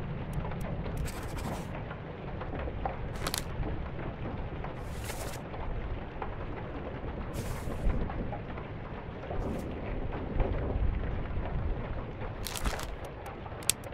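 Paper pages turn with short, soft swishes.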